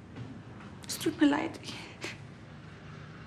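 Another young woman answers in a low, upset voice.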